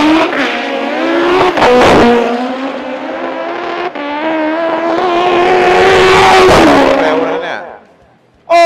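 A race car engine roars loudly at full throttle, its pitch climbing and dropping with each gear change.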